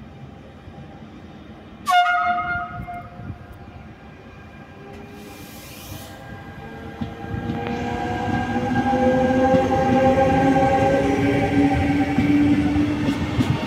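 A train rumbles closer along the tracks, growing louder as it passes.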